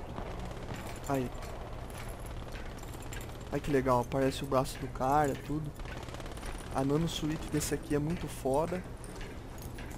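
Hands and boots clank on metal ladder rungs in a steady climbing rhythm.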